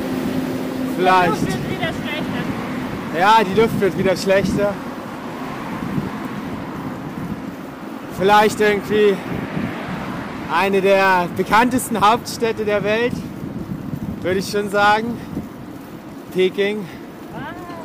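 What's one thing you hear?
A young man talks cheerfully close to a microphone.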